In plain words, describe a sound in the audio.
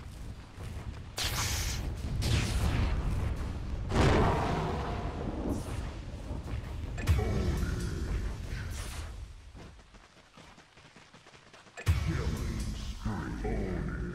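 Fantasy combat sounds clash and burst with magical whooshes.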